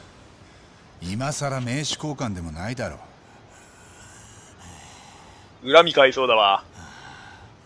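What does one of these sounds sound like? A young man speaks calmly and firmly, close by.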